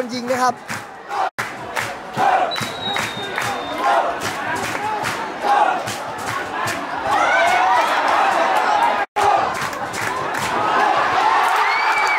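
A large crowd chants and cheers loudly in an open stadium.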